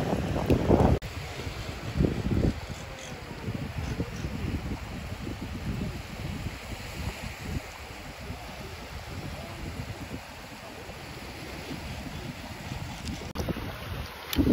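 Shallow water laps gently over sand.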